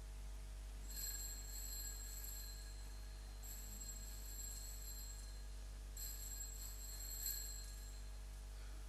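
A small bell rings in short bursts of rapid peals.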